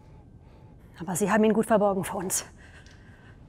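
A woman speaks loudly and briefly in a large echoing hall.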